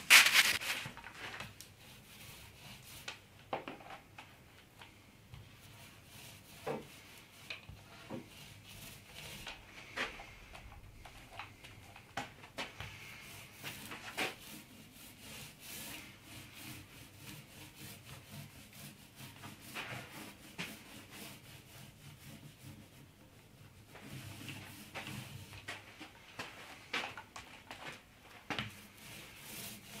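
Hands rub and knock against a long wooden board.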